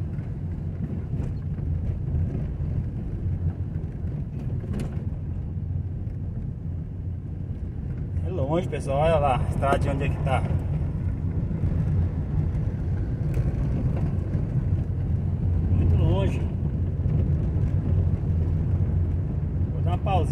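Tyres roll and rattle over a rough dirt road.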